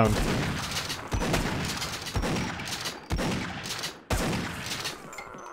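A shotgun fires a series of loud, booming blasts in an echoing space.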